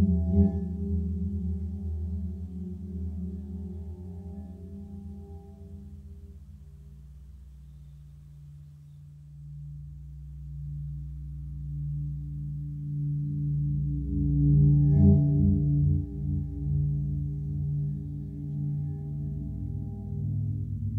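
A reel-to-reel tape machine plays a low, droning hum that fades and then swells again.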